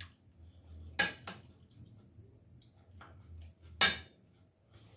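A fork clinks sharply against a metal pan.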